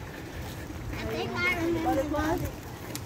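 Children and adults chatter nearby outdoors.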